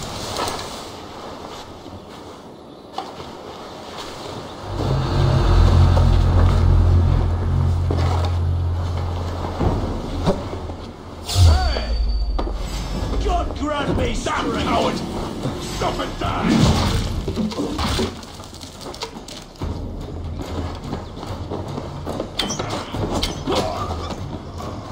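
Footsteps thud on grass and wooden planks.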